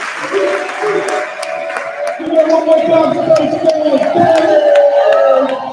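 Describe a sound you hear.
People applaud in an echoing hall.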